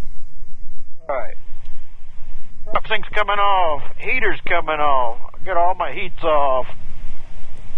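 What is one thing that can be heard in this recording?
A man speaks briefly and calmly over a radio headset.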